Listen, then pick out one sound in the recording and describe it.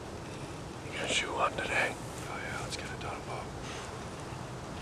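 A man whispers quietly close by.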